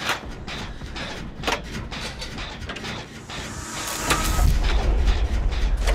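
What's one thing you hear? Metal parts clank and rattle as a machine is worked on by hand.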